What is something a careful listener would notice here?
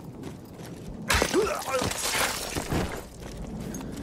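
A sudden struggle erupts with thuds and grunts.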